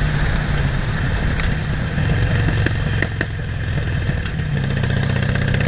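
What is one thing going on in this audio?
A V-twin Harley-Davidson Sportster motorcycle idles.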